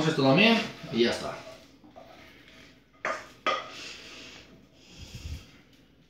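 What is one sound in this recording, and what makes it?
A wooden spatula scrapes and stirs food in a frying pan.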